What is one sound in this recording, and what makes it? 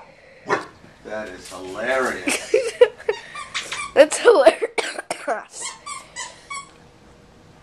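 A small dog barks and yelps excitedly nearby.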